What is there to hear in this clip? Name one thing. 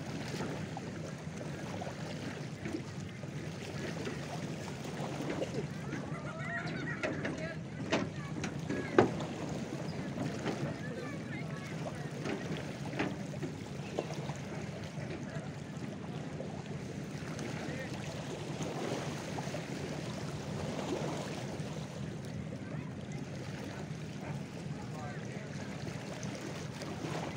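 Small waves lap gently at the water's edge.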